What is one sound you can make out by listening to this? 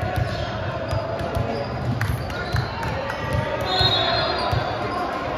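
Volleyballs thud and bounce on a gym floor, echoing in a large hall.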